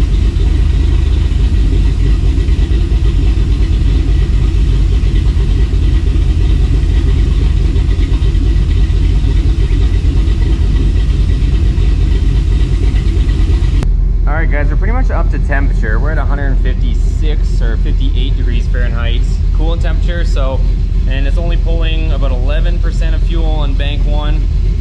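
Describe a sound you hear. A truck engine idles with a loud, steady rumble.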